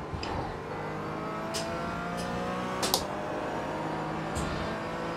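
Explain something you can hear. A racing car engine drones steadily at high speed.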